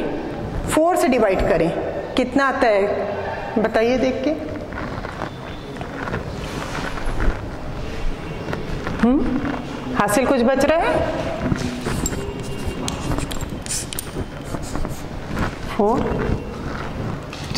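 A woman speaks clearly and steadily, as if teaching, close by.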